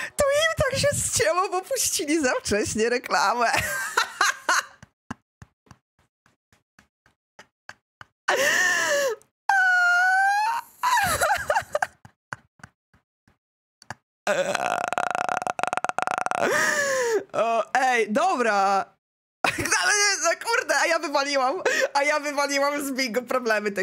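A young woman talks animatedly into a close microphone.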